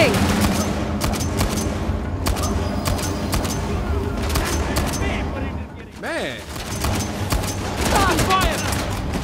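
Gunshots crack repeatedly.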